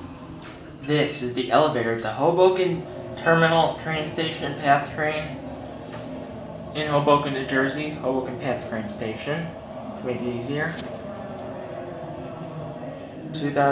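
An elevator car hums softly as it moves.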